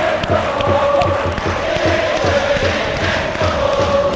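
Hands clap close by.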